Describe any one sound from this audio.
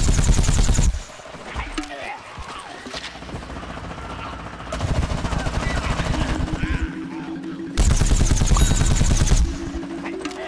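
Rapid blaster fire rattles in loud bursts.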